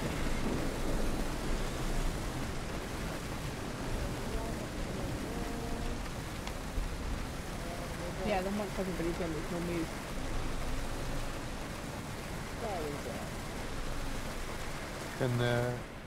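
A car engine rumbles as the car drives over rough ground.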